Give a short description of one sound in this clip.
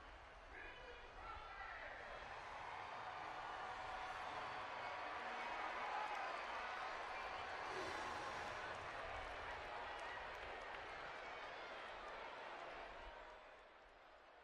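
A large crowd cheers and roars outdoors.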